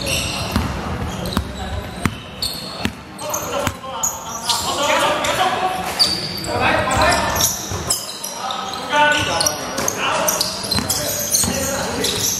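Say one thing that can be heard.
Sneakers squeak sharply on the floor.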